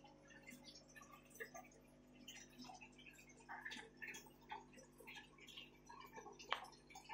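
Air bubbles gurgle and fizz steadily in water.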